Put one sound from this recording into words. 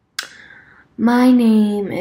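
A young woman speaks close to the microphone.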